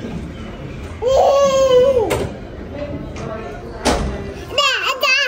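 A toddler squeals and babbles close by.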